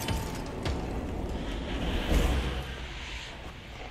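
Debris and glass crash and scatter.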